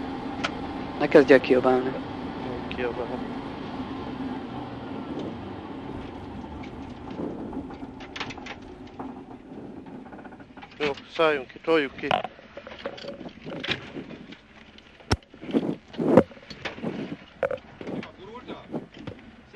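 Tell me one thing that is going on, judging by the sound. A man speaks over an intercom headset inside the car.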